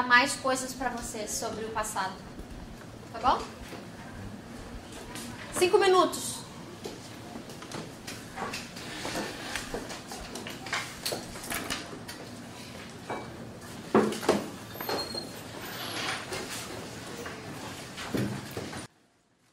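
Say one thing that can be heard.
A woman speaks to a group, heard from a distance.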